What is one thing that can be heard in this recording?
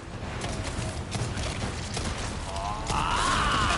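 A monster shrieks with a rising and falling wail.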